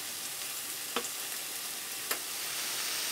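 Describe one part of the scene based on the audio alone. A spatula knocks against a frying pan.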